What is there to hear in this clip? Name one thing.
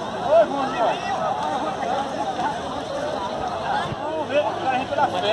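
A large crowd of men and women shouts and chatters outdoors.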